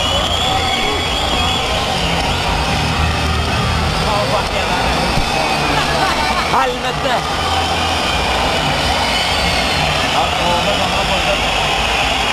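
A huge crowd cheers, shouts and whistles loudly in a large open arena.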